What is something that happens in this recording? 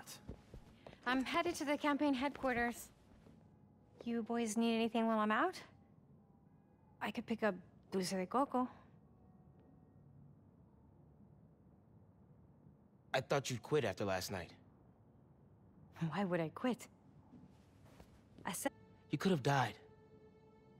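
A woman speaks warmly and close by.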